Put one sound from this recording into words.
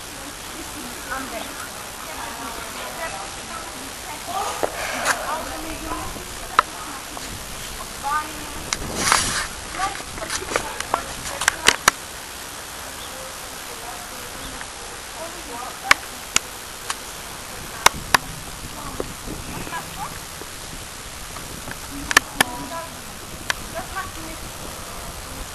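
Young women talk nearby outdoors.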